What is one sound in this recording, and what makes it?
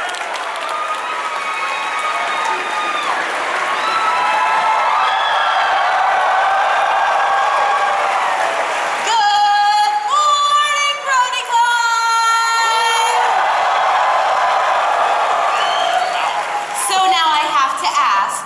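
Young women cheer and shriek excitedly in a large echoing hall.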